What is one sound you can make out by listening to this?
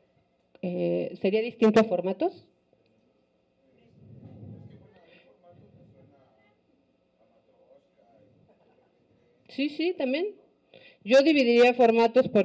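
A woman speaks with animation into a microphone, heard through a loudspeaker.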